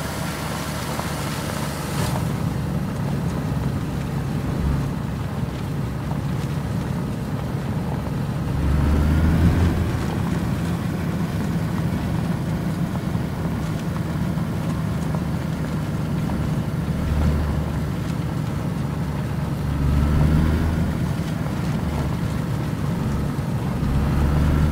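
A vehicle engine rumbles steadily, swelling now and then.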